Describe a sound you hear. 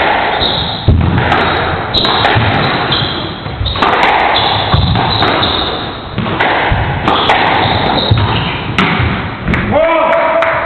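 A squash ball smacks against the walls and racquets in a fast rally.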